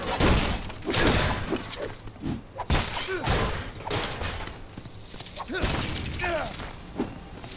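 Plastic pieces smash and clatter apart.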